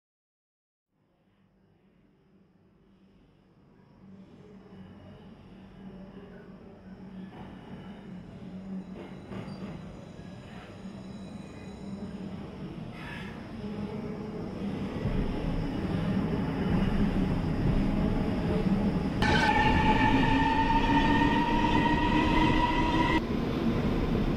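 A subway train rumbles closer through a tunnel and grows steadily louder.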